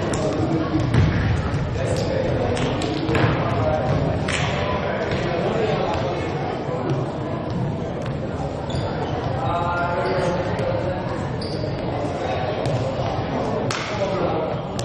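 A volleyball is struck hard and smacks in a large echoing hall.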